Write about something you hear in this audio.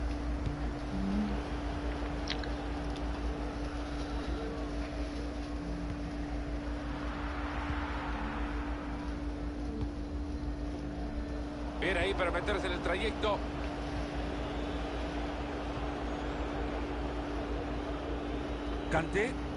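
A stadium crowd roars steadily in a football video game.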